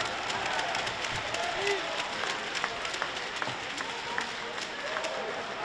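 Sticks click against the puck.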